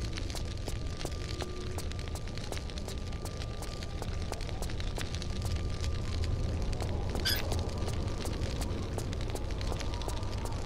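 Quick footsteps tap steadily on a hard floor.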